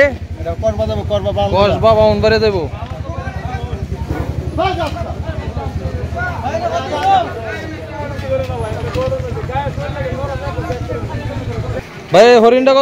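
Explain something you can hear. A man talks loudly and with animation close by.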